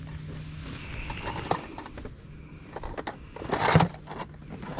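A cardboard box rustles and taps in someone's hands.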